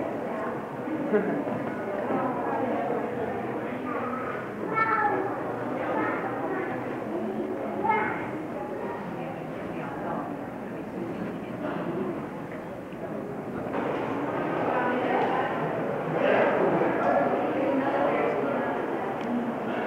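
A crowd of adults chatter in a large echoing hall.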